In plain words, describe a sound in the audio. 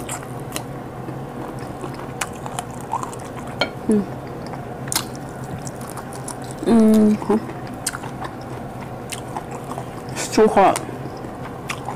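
Food smacks and crunches in a young woman's mouth as she chews.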